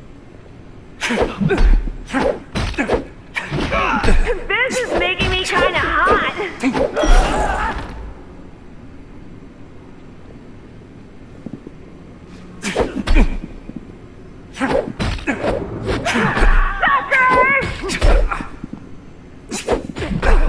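A bat thuds against bodies in a fight.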